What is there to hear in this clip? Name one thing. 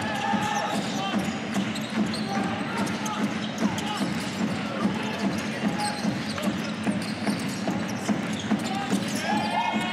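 A basketball bounces repeatedly on a wooden court in a large echoing hall.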